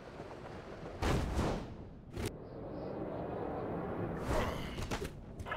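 Heavy impacts thud as a game character lands and strikes.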